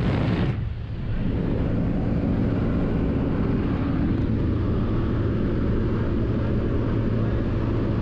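An aircraft engine drones loudly and steadily.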